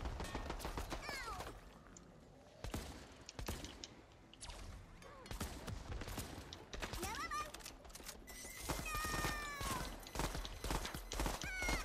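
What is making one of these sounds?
Guns fire in rapid bursts with electronic game sound effects.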